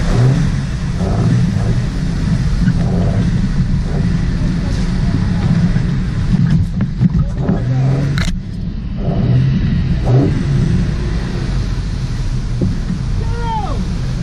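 An off-road vehicle's engine rumbles steadily at low speed.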